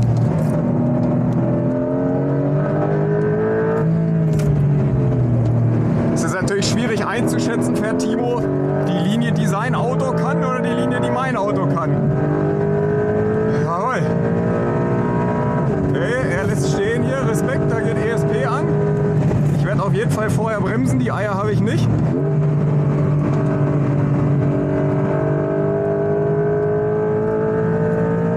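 A car engine roars and revs, rising and falling in pitch as the car speeds along.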